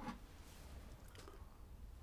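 A man sips hot tea from a cup.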